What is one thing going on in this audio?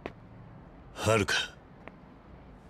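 A young girl cries out.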